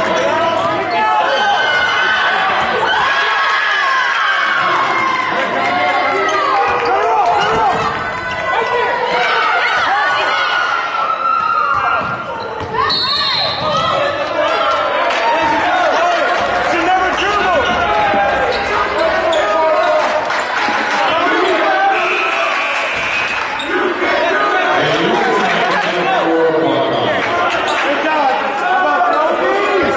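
A crowd of spectators talks and cheers in a large echoing gym.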